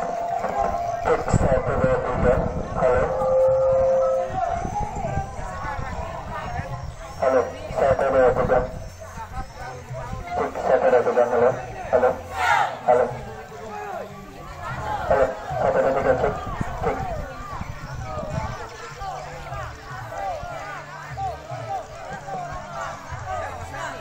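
A man shouts drill commands loudly outdoors.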